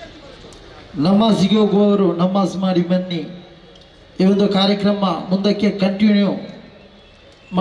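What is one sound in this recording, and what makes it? A young man speaks loudly and forcefully through a microphone and loudspeakers.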